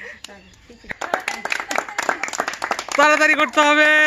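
Several women clap their hands.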